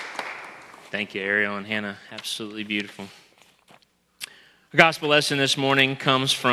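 A man speaks calmly over a microphone in a large echoing hall.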